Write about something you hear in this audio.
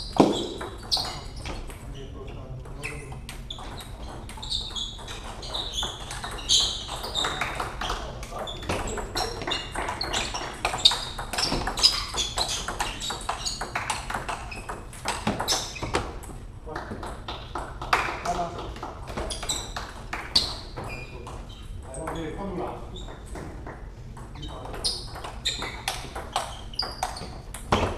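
Sneakers squeak on the floor as players move.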